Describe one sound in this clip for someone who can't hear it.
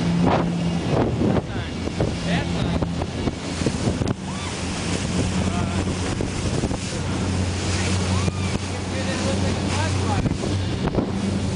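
Water churns and splashes against a moving boat's hull.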